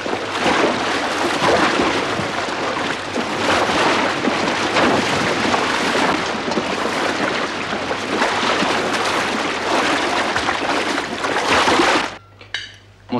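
Horses move about.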